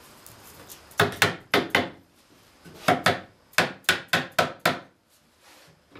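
A mallet taps sharply on wood several times.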